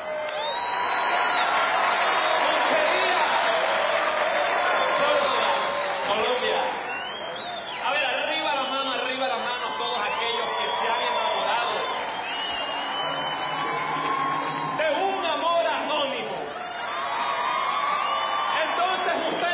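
A crowd cheers and sings along.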